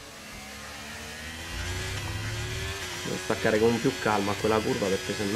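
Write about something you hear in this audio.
A racing car engine drones steadily and rises in pitch as it speeds up.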